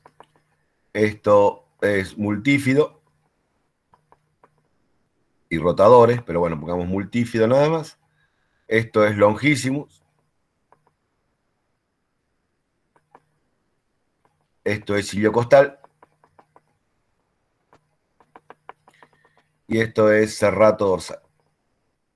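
A man speaks calmly in short phrases over an online call, with pauses between.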